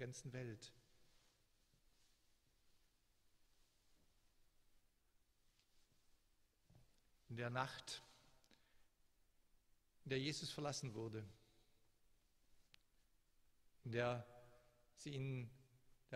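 An older man speaks calmly into a microphone, with pauses, in a large echoing room.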